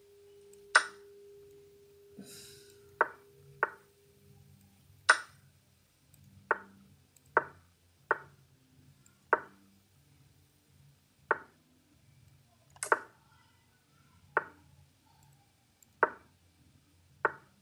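Chess pieces click sharply as moves are made.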